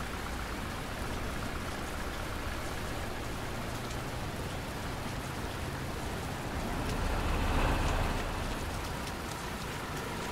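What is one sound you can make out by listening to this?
Steady rain falls and patters on wet pavement.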